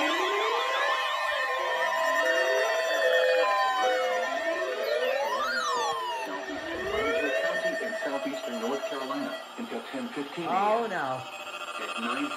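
Several electronic alarms wail with rising and falling tones at once.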